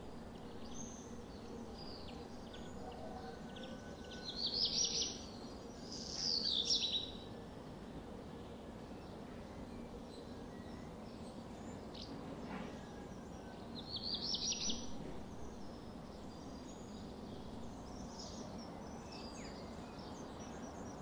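Small birds chirp and twitter outdoors in short bursts.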